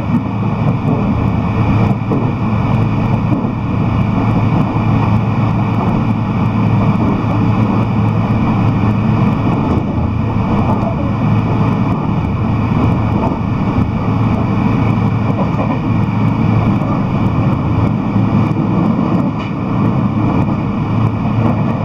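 A train rumbles and hums steadily as it rolls along.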